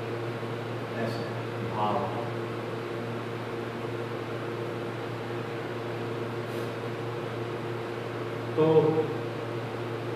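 An elderly man speaks a few short words.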